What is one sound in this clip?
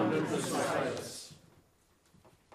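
A small choir sings together.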